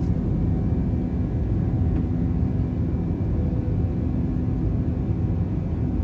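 An airplane's engines roar with a steady, low rumble inside the cabin.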